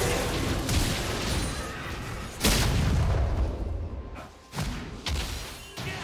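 Magic spells whoosh and crackle in a fast video game fight.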